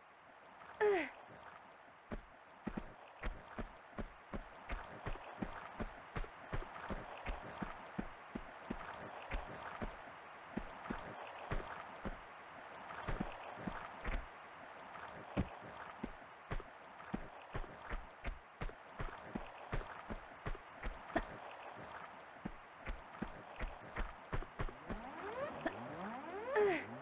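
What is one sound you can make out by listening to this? A young woman grunts with effort as she leaps.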